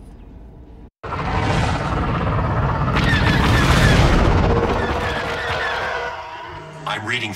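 A spaceship engine roars loudly as the ship rushes past.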